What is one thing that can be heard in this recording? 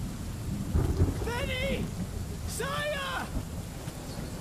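A young man shouts, calling out loudly.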